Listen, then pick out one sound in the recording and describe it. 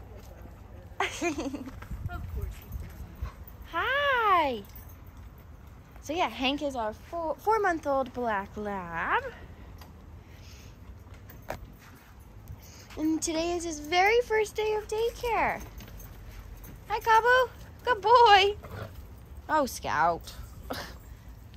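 Dogs whine and yelp close by.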